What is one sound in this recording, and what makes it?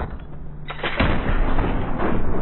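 A gunshot rings out indoors.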